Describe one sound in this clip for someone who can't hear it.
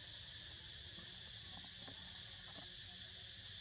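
A monkey chews and munches on soft fruit up close.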